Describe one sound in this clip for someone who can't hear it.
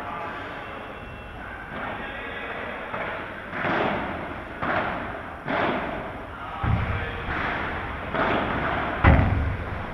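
A ball bounces off the court.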